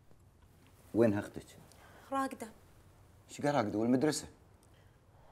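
An elderly man speaks earnestly and close by.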